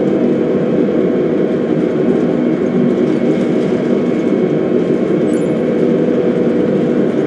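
Jet engines roar steadily as an airliner speeds down a runway.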